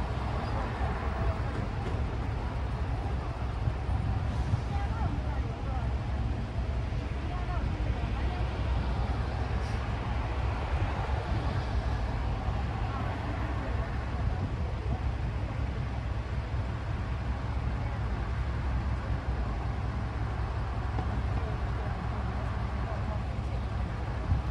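Outdoors, wind rumbles steadily across the microphone.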